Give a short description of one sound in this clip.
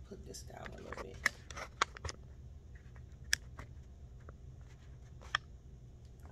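Metal buckles on a leather handbag clink as hands handle it.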